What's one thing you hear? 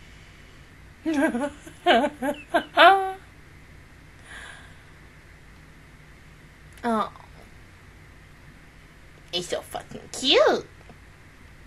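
A young woman speaks in short bursts close to a microphone.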